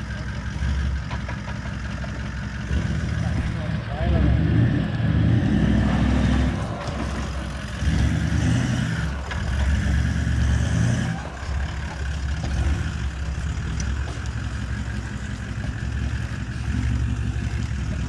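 Tyres crunch over loose dirt and gravel.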